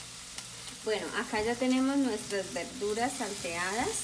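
A spatula scrapes and stirs vegetables in a frying pan.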